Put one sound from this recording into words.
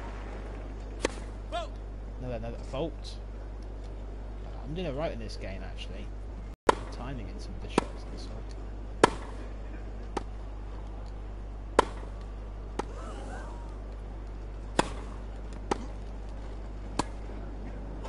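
A tennis ball is struck sharply with a racket again and again.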